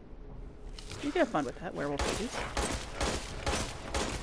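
A pistol fires several shots in quick succession.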